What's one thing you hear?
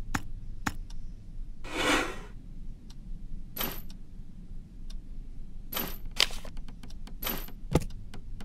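Short game interface clicks and whooshes sound now and then.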